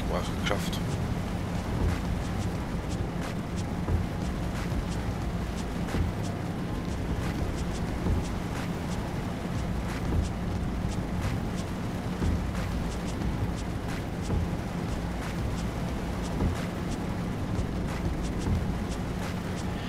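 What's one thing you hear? Windshield wipers sweep back and forth with a soft thump about every two seconds.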